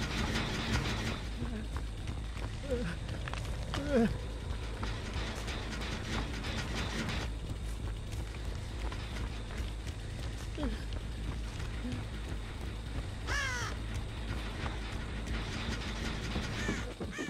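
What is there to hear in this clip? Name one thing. Heavy footsteps tread through dry grass.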